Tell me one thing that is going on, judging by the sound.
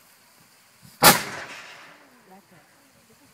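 A cannon fires with a single loud boom that echoes away.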